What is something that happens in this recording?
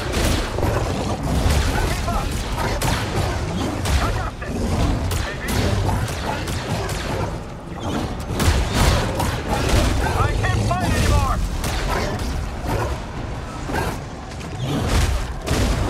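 Blaster shots zap rapidly.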